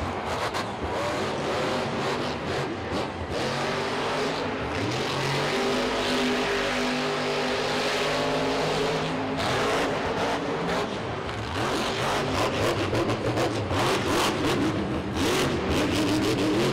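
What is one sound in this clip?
A large crowd cheers in a big echoing arena.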